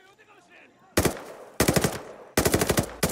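A rifle fires in quick bursts of loud shots.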